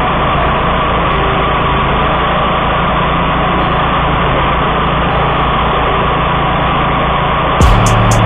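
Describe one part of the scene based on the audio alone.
A mower's engine roars steadily close by.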